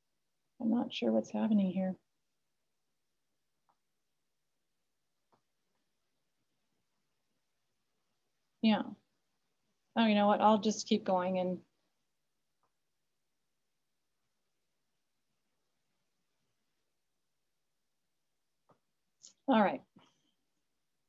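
A woman speaks calmly in short bursts over an online call, with long pauses.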